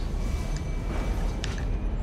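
An electric bolt crackles and buzzes.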